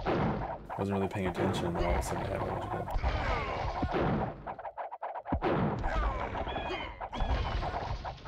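Swords clash and clang in a skirmish.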